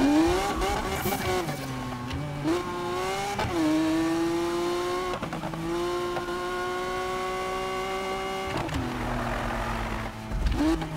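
A sports car engine roars and revs up and down as gears shift.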